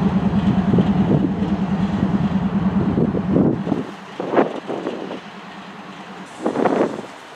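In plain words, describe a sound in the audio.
A diesel locomotive engine rumbles steadily nearby, then drops off.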